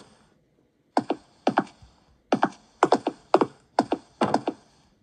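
A tablet game plays short, repeated falling electronic sounds in quick pairs.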